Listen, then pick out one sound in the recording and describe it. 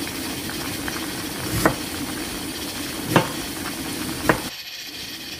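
Water boils hard, bubbling and gurgling steadily.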